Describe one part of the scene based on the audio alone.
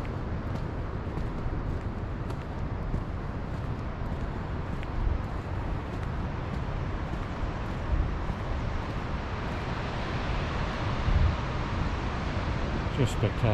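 Wind blows hard against the microphone outdoors.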